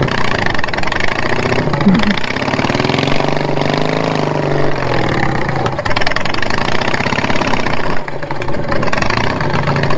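Tyres squelch through mud.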